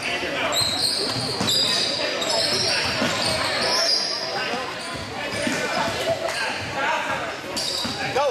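A crowd chatters and shouts in a large echoing gym.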